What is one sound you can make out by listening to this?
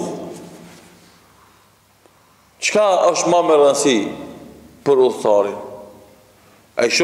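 A man speaks slowly and calmly into a microphone in an echoing room.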